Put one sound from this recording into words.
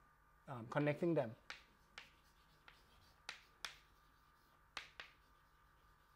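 Chalk taps and scrapes on a chalkboard.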